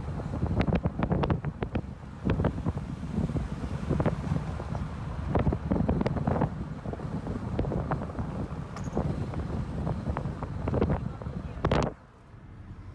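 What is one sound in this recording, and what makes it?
Wind buffets loudly against the microphone outdoors.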